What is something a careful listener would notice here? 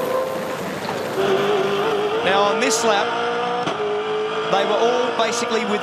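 A racing car engine roars loudly at high revs.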